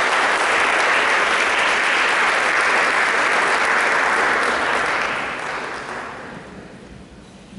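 An audience applauds loudly in a large echoing hall, then the applause dies away.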